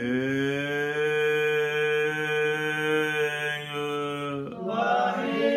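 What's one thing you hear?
An elderly man chants in a long, steady, held tone close by.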